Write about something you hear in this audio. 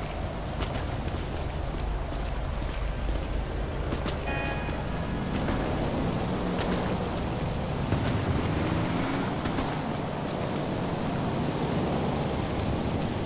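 Rain falls steadily on pavement.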